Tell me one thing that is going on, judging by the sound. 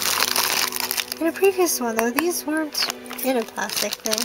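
Plastic bags crinkle and rustle close by.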